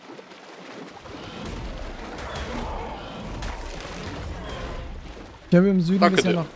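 Water splashes and swirls as a large creature swims through it.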